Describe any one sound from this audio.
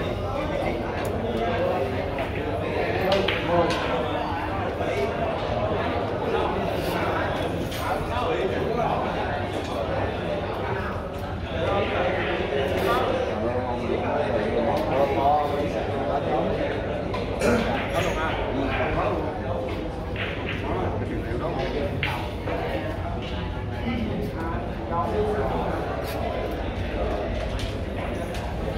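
A crowd murmurs and chatters in a large room.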